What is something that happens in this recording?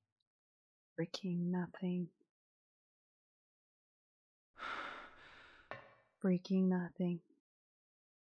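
A young woman speaks softly into a close microphone.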